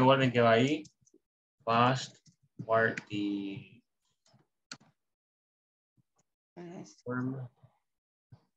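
A man speaks calmly over an online call.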